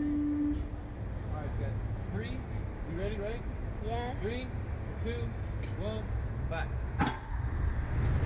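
Two young boys talk and laugh close by.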